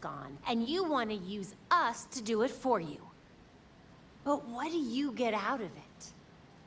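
A young woman speaks firmly and close by.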